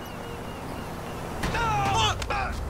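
A car strikes a man with a heavy thud.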